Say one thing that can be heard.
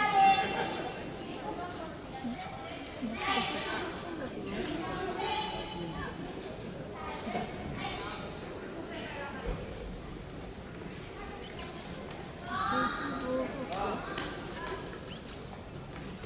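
Spectators call out and cheer in a large echoing hall.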